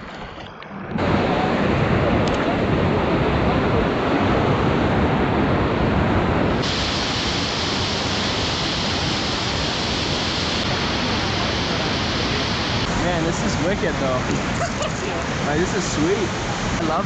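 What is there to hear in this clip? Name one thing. Rapids roar loudly and steadily.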